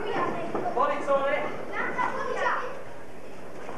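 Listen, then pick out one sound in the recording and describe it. A crowd of spectators shouts in a hall.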